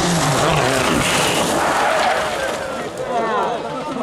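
Gravel sprays and crunches under a car's tyres as it slides through a turn.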